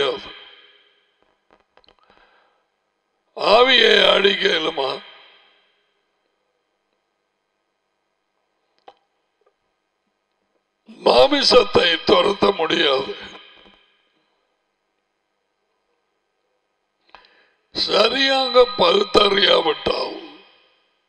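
An elderly man speaks with animation through a close headset microphone, in bursts with long pauses.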